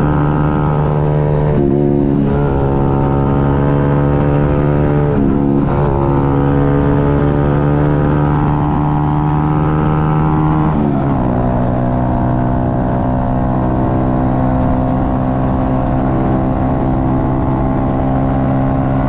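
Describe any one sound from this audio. Wind rushes past a rider.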